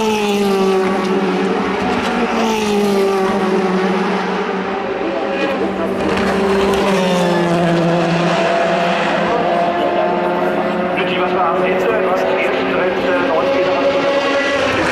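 A racing car engine roars loudly and shifts pitch as the car speeds along the track.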